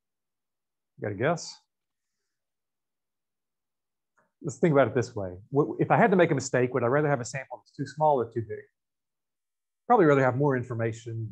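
A man speaks calmly through a microphone, explaining in short bursts with pauses.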